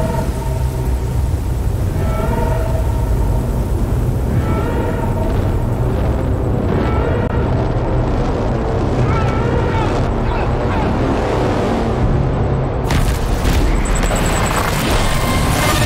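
A deep, steady rumble roars as debris tumbles through the air.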